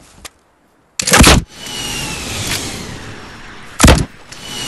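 A rocket explodes with a loud boom, followed by a rushing roar.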